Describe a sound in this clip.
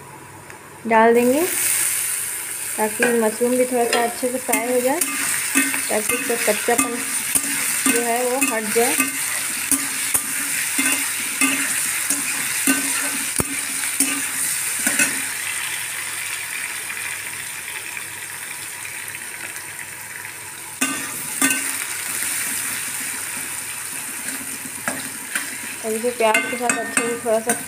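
Onions and mushrooms sizzle in hot oil.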